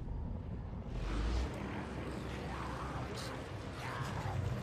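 A horde of zombies growls and shrieks nearby.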